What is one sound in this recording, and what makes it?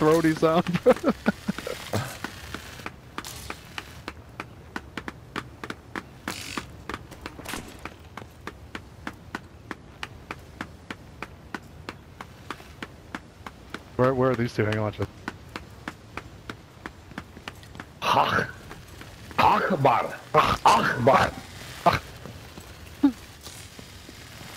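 Footsteps run quickly and evenly over a hard floor.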